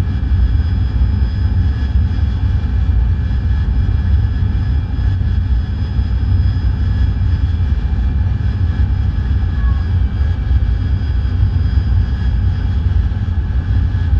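Wind rushes over a cockpit canopy.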